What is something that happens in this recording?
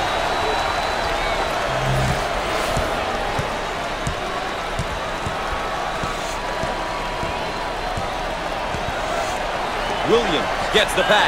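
A large crowd roars steadily in an echoing arena.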